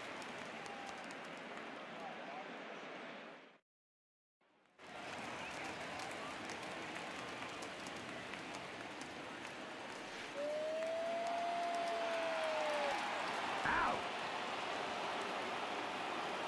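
A large crowd murmurs and cheers in an echoing stadium.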